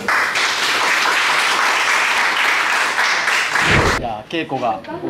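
A group of people applaud in a large room.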